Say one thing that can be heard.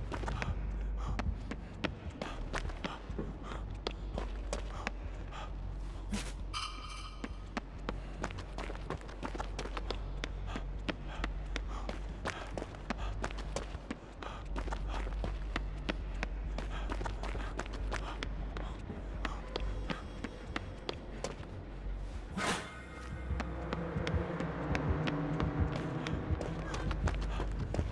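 Footsteps run quickly over hard floors.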